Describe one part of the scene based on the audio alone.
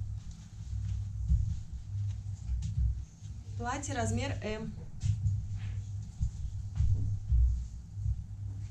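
Fabric rustles softly as clothes are handled.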